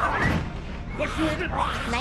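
A man yells angrily up close.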